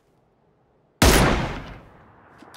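A sniper rifle fires a single loud shot that echoes away.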